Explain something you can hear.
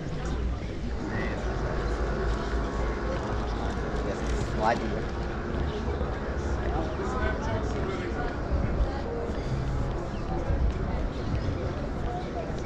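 Adults chat nearby in passing, their voices coming and going.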